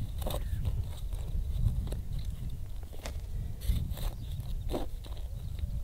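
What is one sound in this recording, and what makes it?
A small trowel scrapes and digs into dry soil.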